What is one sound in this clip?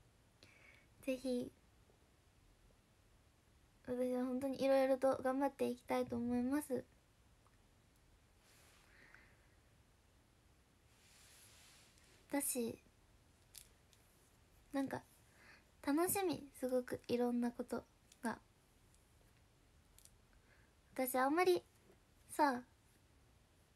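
A young woman speaks close to the microphone in short, lively bursts with pauses between.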